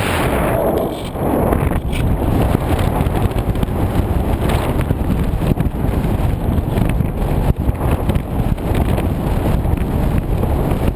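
Wind rushes and buffets loudly against a gliding model plane.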